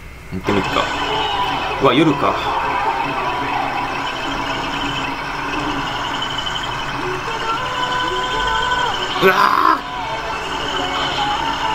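A truck engine drones steadily.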